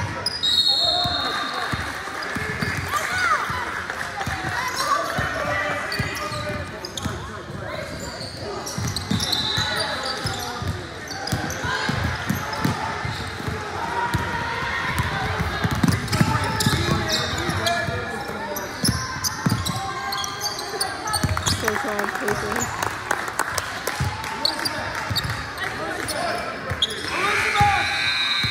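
Young women call out to each other on a court.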